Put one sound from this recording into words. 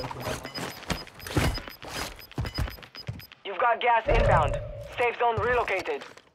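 Footsteps crunch on dry dirt and gravel.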